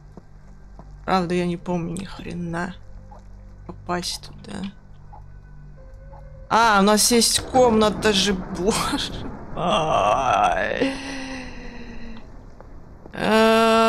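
A young person speaks with animation into a nearby microphone.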